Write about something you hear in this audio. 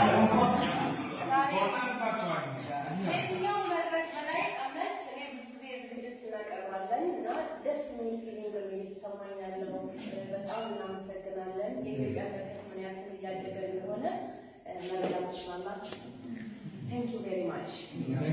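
A group of women sing together.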